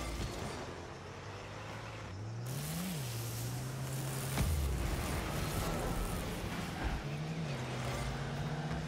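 A video game car's engine hums.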